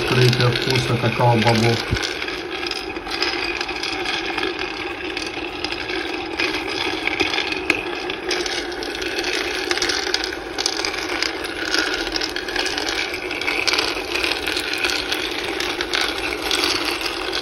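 Beans rattle and tumble inside a spinning roaster.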